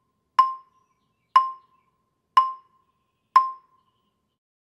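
Mallets strike wooden bars of a marimba in four evenly spaced ringing notes.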